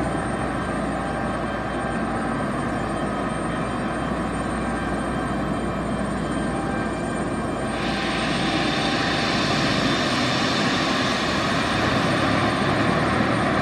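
An airliner's turbofan engines whine as it is pushed back.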